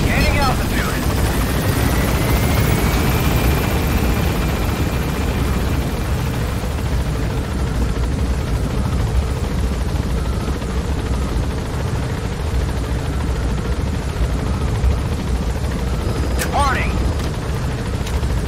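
A helicopter rotor thumps and roars steadily.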